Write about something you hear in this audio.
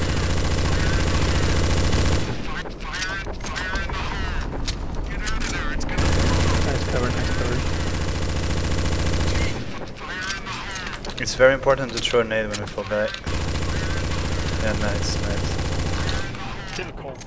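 A rifle fires rapid automatic bursts.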